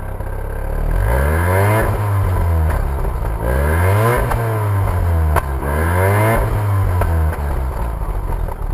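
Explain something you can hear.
A car engine revs up and down three times.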